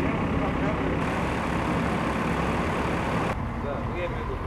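A loader's engine idles close by.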